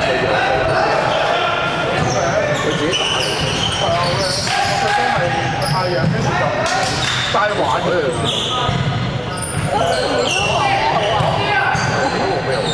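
Men talk and call out in the background.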